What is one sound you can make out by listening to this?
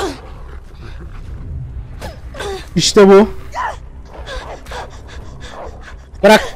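A young man talks with animation into a close microphone, at times crying out loudly.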